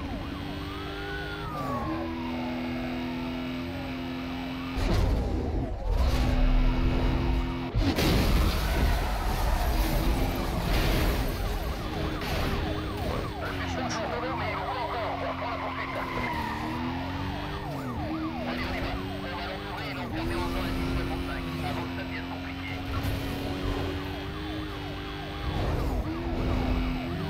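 A racing car engine roars at high speed, shifting gears.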